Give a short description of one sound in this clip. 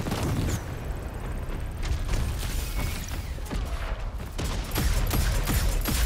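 Footsteps thud on hard ground in a video game.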